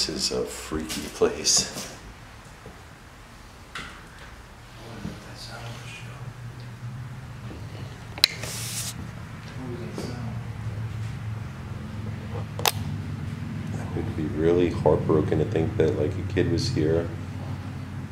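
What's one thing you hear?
A man speaks quietly, close to the microphone.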